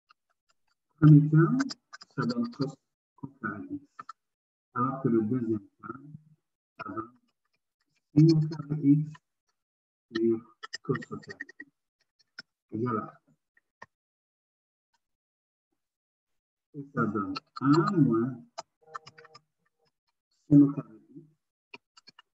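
A man explains calmly over an online call, in short bursts with pauses.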